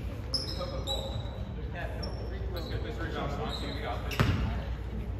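Young players call out to each other in a large echoing hall.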